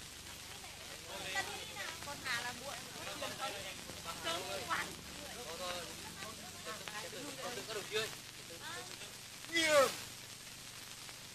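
Several men talk in low voices outdoors.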